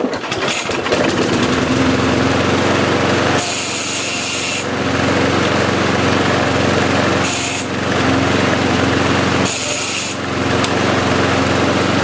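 A petrol lawnmower engine sputters to life, then runs with a steady, throbbing idle close by.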